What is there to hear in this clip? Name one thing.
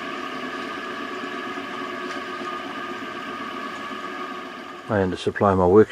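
An electric motor hums steadily nearby.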